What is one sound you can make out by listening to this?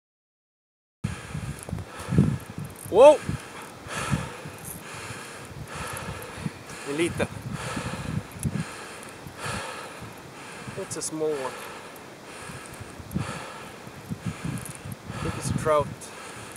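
A young man talks calmly, close by, outdoors.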